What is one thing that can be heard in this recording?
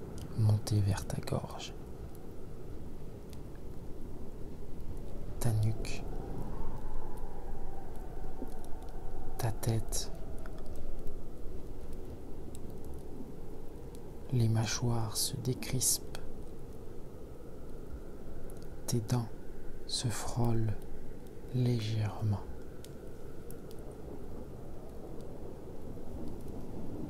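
A wood fire crackles and pops close by.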